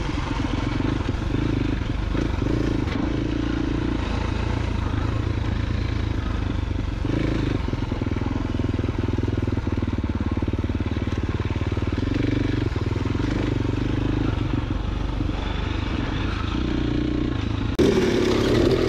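Tyres crunch over a rocky dirt trail.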